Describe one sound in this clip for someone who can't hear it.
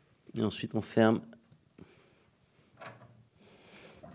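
The cast-iron door of a wood stove is shut and latched.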